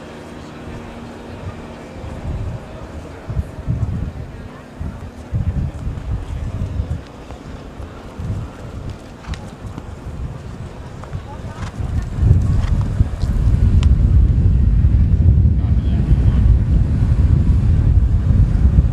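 A horse's hooves thud on grass at a canter.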